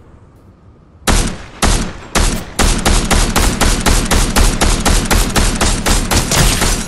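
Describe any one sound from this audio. A rifle fires rapid, repeated gunshots.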